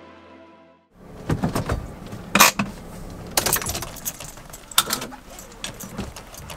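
Keys jangle and clink on a key ring.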